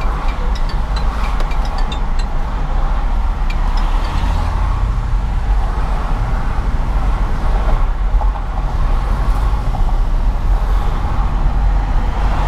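Traffic hums and whooshes past on the highway.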